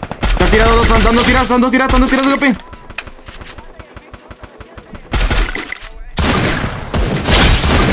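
Sniper rifle shots crack loudly.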